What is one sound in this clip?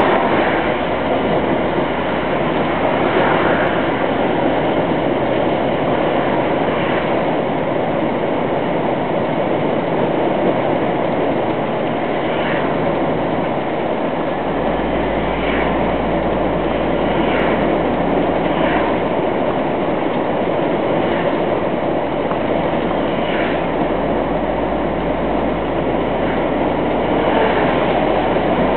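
A vehicle's engine hums steadily while driving along a highway.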